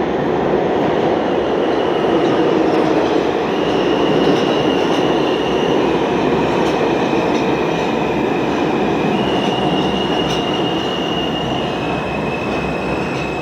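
Train brakes squeal in long high tones.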